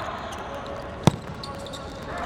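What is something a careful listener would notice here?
A ball is struck hard with a sharp thud.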